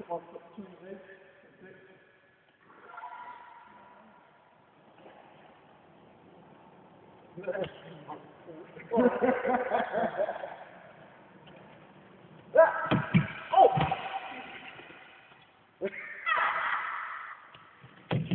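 A young man talks and shouts in a large echoing hall.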